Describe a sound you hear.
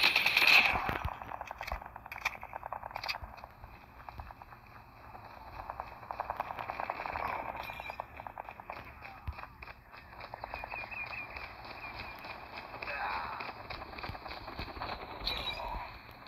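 Quick footsteps patter on dirt.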